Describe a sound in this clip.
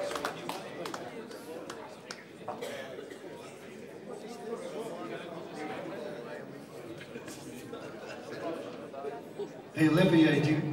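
A man speaks into a microphone over loudspeakers.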